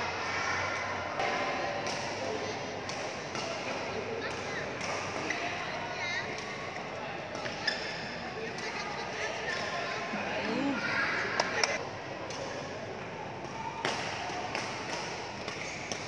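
Shuttlecocks are struck with rackets in sharp pops, in a large echoing hall.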